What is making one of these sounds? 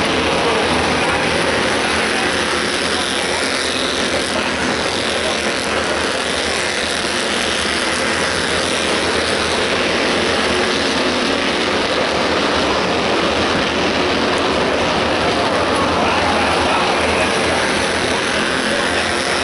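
Race car engines roar loudly as the cars speed around a track.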